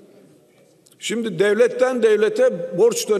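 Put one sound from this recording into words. A middle-aged man speaks forcefully into a microphone in a large echoing hall.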